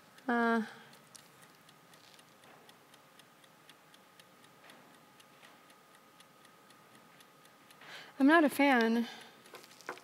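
A mechanical chess clock ticks steadily.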